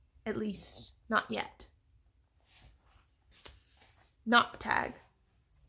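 A young woman speaks close by, with animation.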